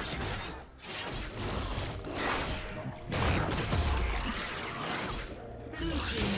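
Game creatures clash with magical whooshes and heavy impacts.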